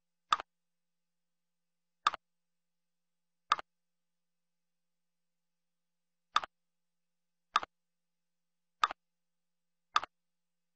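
Bones clack into place with short, hollow knocks, one at a time.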